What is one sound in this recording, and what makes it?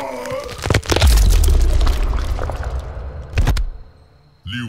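A deep rumbling boom swells and slowly fades.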